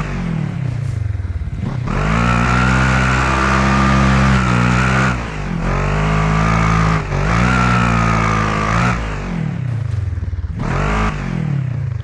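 An off-road buggy engine revs hard, rising and falling in pitch as gears change.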